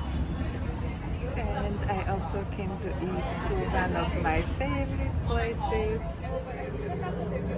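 A young woman talks cheerfully and close to the microphone.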